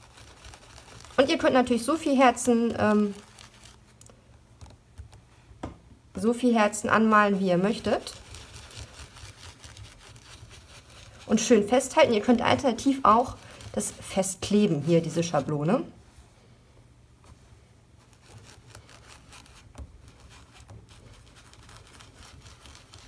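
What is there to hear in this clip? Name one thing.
A sponge dabs softly on paper.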